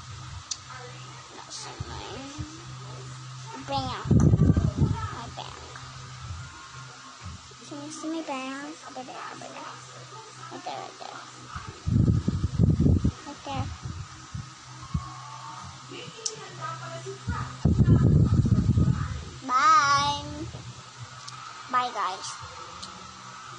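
A young girl speaks softly and playfully close to a microphone.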